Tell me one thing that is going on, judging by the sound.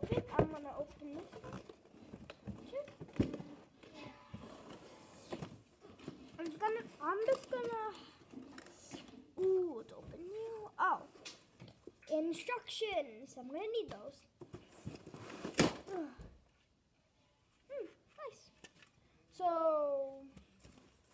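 Cardboard and plastic packaging rustle and crinkle as a box is torn open.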